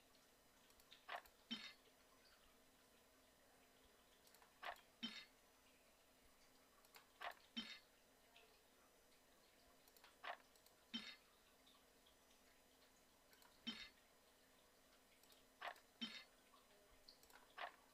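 Short bright clicks and chimes come in pairs every few seconds.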